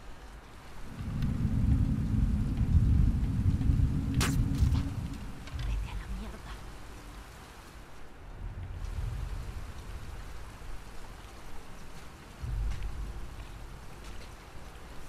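Footsteps shuffle over wet ground.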